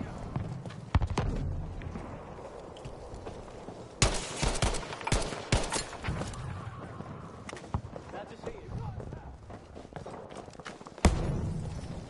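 A rifle fires loud single shots that echo briefly.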